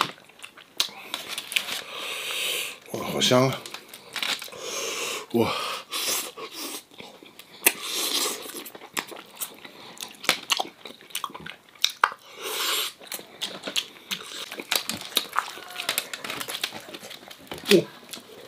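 Aluminium foil crinkles as hands tear at roast chicken.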